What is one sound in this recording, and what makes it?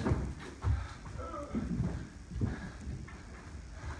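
Bare feet thud on a wooden floor.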